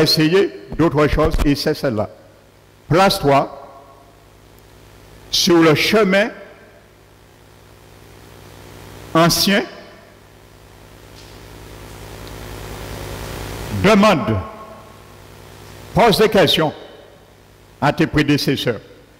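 An elderly man speaks slowly into a headset microphone, with long pauses, in an echoing room.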